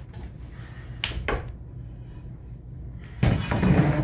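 A metal chair scrapes and clatters on a wooden floor.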